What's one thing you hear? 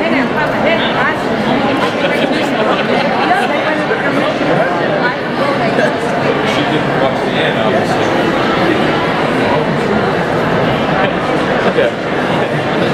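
A large crowd talks and cheers loudly in a big echoing hall.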